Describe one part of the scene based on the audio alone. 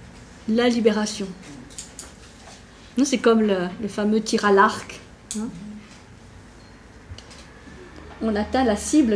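A middle-aged woman speaks calmly and thoughtfully, close by.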